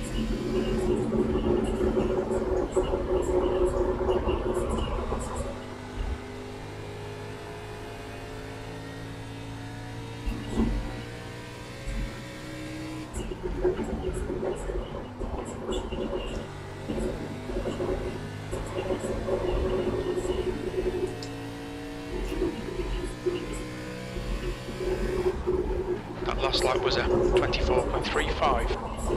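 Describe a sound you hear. A race car engine drones steadily, rising and falling in pitch with gear changes.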